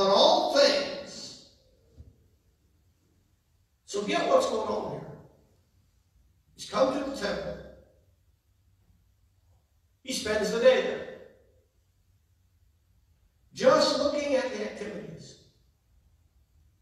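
A man speaks calmly in short phrases with pauses, heard through a loudspeaker in an echoing hall.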